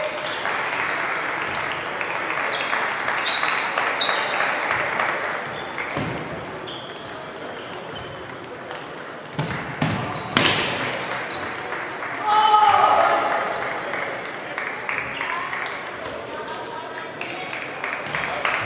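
A crowd of players murmurs and calls out in a large echoing hall.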